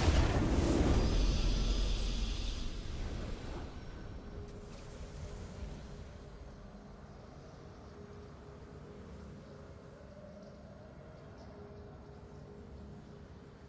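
A victory fanfare swells and then fades.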